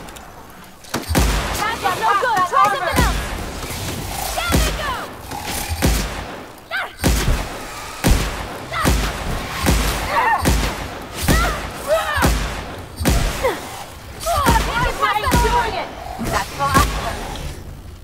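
A rifle fires sharp, repeated shots.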